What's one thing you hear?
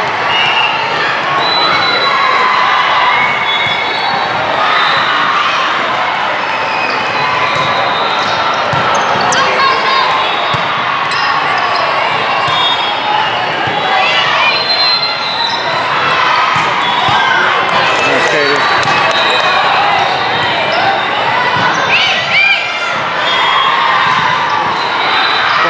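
A crowd of young women and spectators chatter and cheer throughout a large echoing hall.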